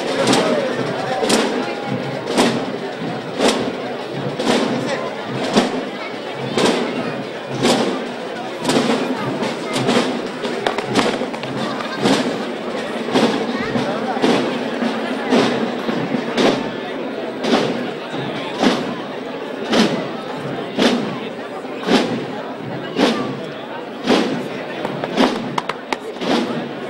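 A large outdoor crowd of men and women murmurs and chatters.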